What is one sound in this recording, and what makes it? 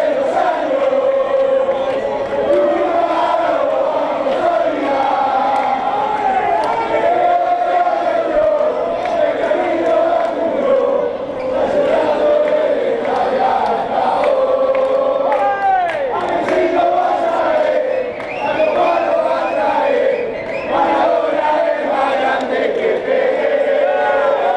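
A large crowd of men sings and chants loudly close by, in a large echoing hall.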